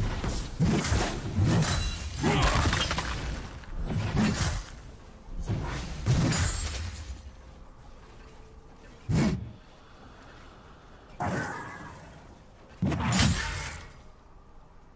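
Video game combat sounds of spells and hits burst out repeatedly.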